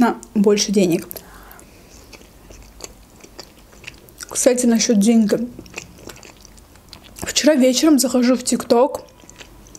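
A young woman speaks close to a microphone in short, animated bursts.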